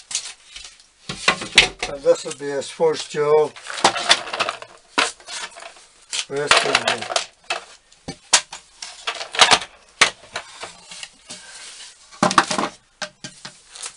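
A wooden stool knocks and scrapes against a hard floor.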